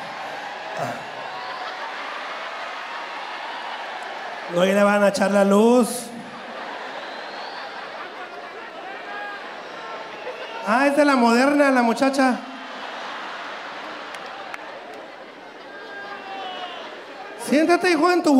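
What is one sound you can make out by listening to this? A large crowd cheers and murmurs.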